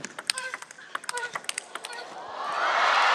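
A table tennis ball clicks back and forth between bats and table in a fast rally.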